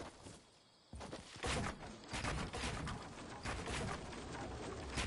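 Wooden building pieces snap into place with sharp knocks.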